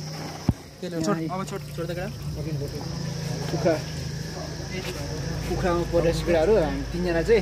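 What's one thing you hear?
Water runs from a tap into a bucket.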